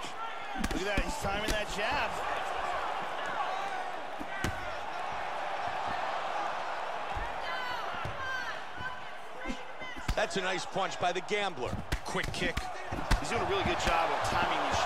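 Kicks and punches land with sharp thuds.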